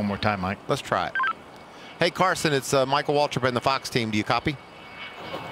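A man talks quickly over a crackly radio.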